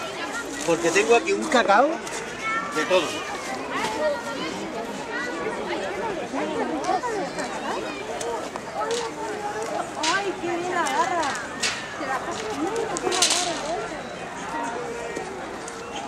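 A crowd of adults and children chatters and calls out nearby outdoors.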